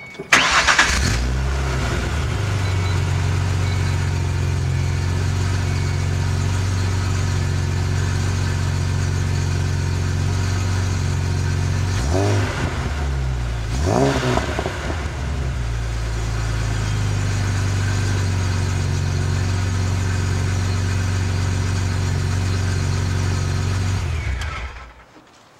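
A car engine idles with a deep, steady rumble from the exhaust.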